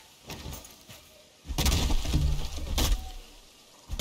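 An axe chops into a log.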